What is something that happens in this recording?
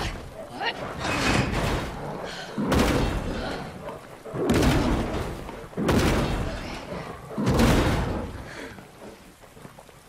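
A heavy metal gate rattles and clanks loudly as it is shoved, again and again.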